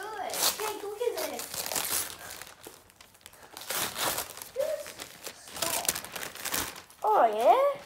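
Wrapping paper rustles and tears loudly close by.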